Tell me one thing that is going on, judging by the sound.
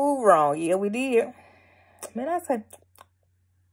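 A young woman speaks close to a phone microphone, with a lively, sing-song voice.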